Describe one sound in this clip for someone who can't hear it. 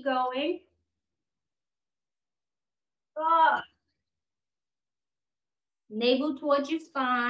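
A woman speaks calmly, giving instructions through a close microphone, with pauses in between.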